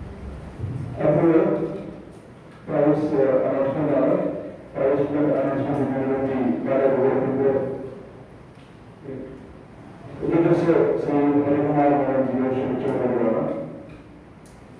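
A man reads out.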